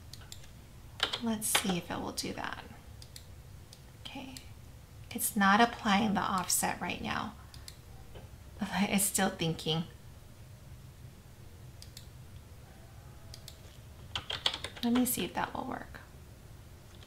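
A woman speaks calmly into a microphone, in short bursts.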